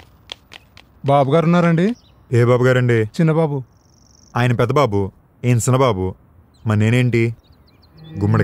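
A young man speaks sharply and forcefully close by.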